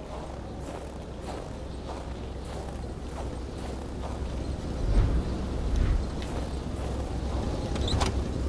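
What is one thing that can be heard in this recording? Wind howls and gusts steadily in a snowstorm.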